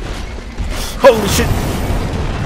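A huge beast strikes with a heavy crashing blow.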